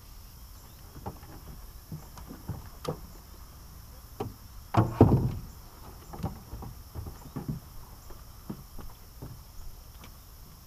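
Knocks and thumps sound against a metal boat.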